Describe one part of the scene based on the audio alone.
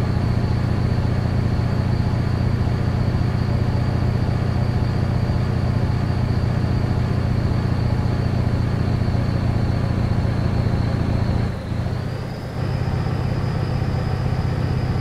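A truck's diesel engine drones steadily, dipping briefly as the gears change.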